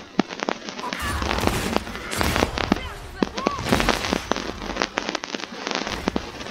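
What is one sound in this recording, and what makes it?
Magic blasts boom and crackle in a fight.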